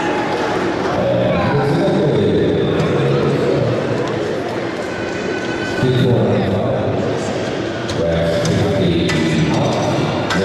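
Metal weight plates clank as they are slid on and off a bar.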